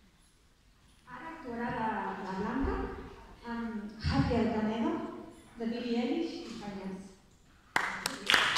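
A young woman speaks calmly into a microphone over loudspeakers.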